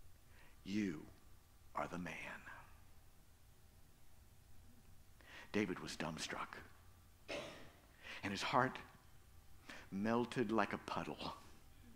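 A middle-aged man speaks with animation into a microphone, in phrases broken by pauses.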